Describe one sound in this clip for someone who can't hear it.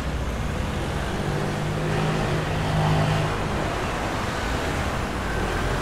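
A motor scooter engine drones as it passes close by.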